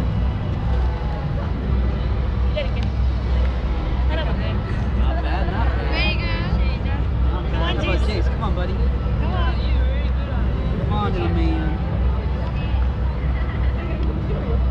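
Children and adults chatter and call out nearby.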